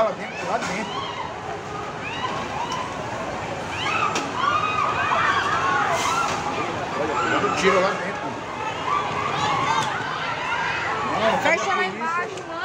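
A crowd shouts and chants in the street below, heard from a distance.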